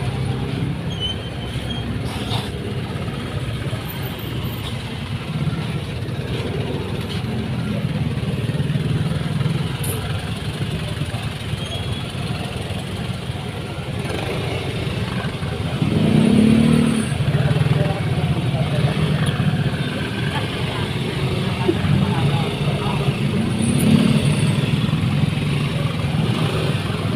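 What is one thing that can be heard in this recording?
Motorcycle engines idle and rumble nearby in traffic.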